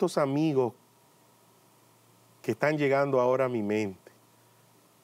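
A man speaks with animation into a microphone, in short bursts.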